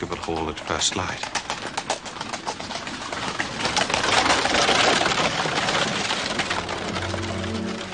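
A horse's hooves clop on a road.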